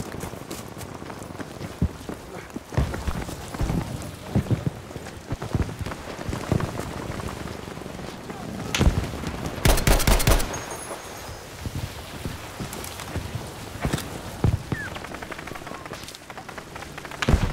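Gunshots crack and boom in the distance.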